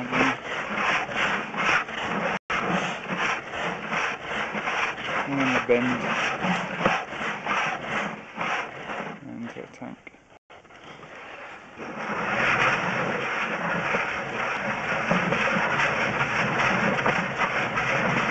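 Water sprays and rushes with a pulsing hiss inside a pipe.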